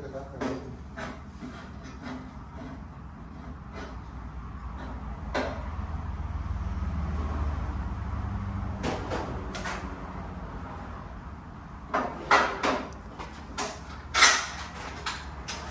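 Metal panels clank and click as men fit them together.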